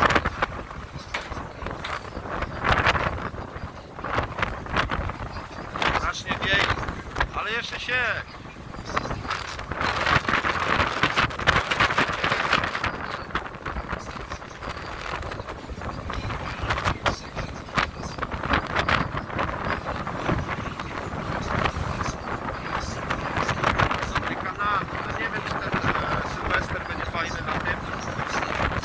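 Water churns and splashes against the hull of a moving boat.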